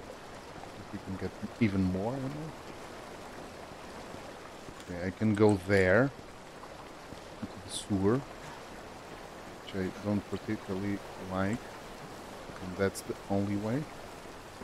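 A middle-aged man talks with animation into a close microphone, in short bursts.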